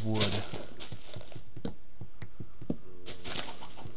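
A video-game digging sound crunches as blocks break.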